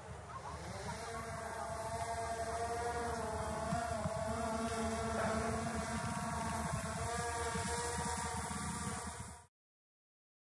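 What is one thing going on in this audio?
A small drone's propellers whine with a steady high buzz.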